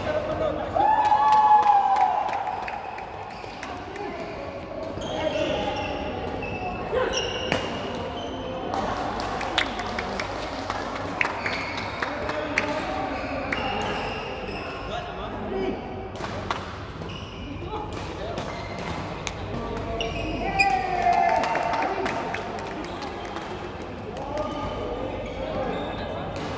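Shuttlecocks are struck with rackets in sharp pops, in a large echoing hall.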